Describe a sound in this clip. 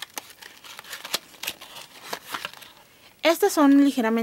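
Cardboard boxes rustle and tap as crayons are handled.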